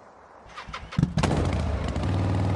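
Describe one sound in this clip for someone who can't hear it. A motorcycle engine starts up and rumbles loudly.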